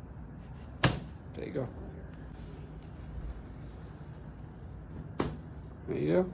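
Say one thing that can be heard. A plastic joint snaps into place with a sharp click.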